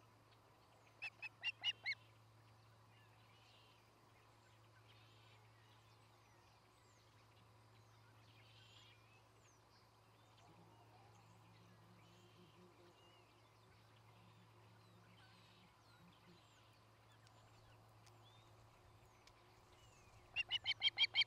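An osprey gives a series of sharp, high chirps close by.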